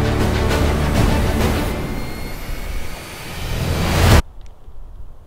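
Loud wind blusters outdoors.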